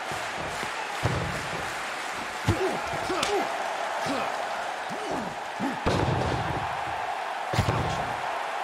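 Heavy thuds ring out as a wrestler hits the mat.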